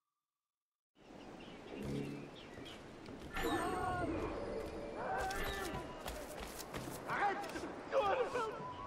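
Footsteps tread on wooden boards and grass.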